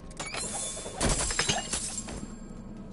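Coins and items clatter onto a stone floor.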